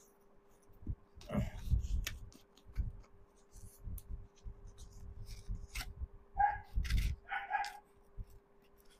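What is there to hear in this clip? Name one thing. Scissors snip at a paper-wrapped parcel.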